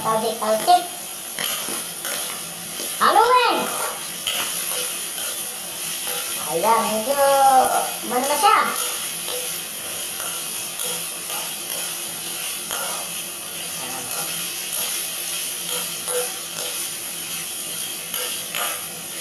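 Food sizzles as it stir-fries in a hot wok.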